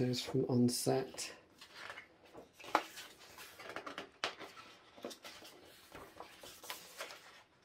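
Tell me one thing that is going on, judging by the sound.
Pages of a book rustle and flap as they are turned.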